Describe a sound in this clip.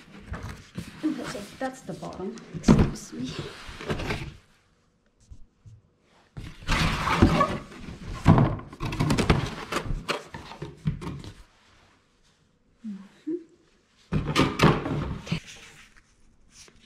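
Cardboard flaps scrape and thump as a box is opened and handled.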